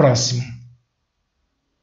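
A man speaks close to a microphone, cheerfully.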